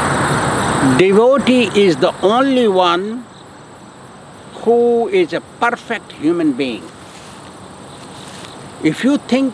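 An elderly man speaks slowly and calmly close by, with long pauses.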